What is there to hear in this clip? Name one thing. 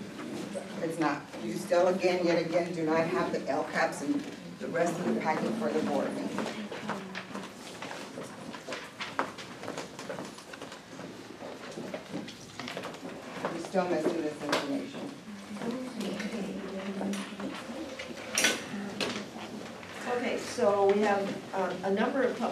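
Men and women talk in a room with some echo.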